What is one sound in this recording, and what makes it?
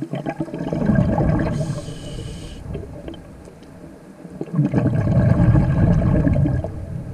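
Water rumbles and gurgles underwater in bursts.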